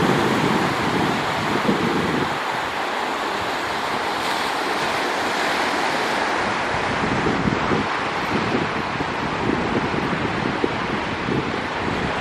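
Small waves wash and fizz up onto a sandy shore.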